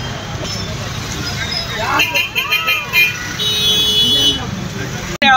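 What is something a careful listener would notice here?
Traffic hums steadily in a busy street.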